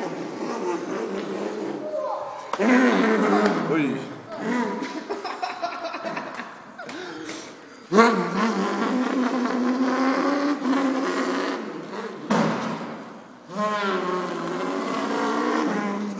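A small electric toy car motor whirs as the car drives across a hard surface.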